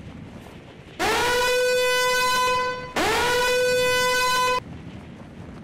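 A loud alarm blares twice in long, harsh bursts.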